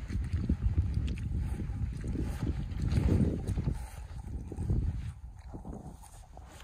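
Boots squelch through thick wet mud with each step.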